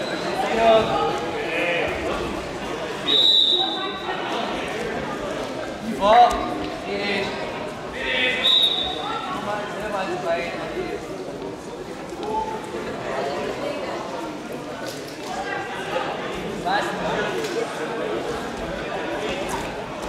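Spectators shout and call out in an echoing hall.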